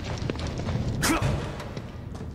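A door creaks and bangs open.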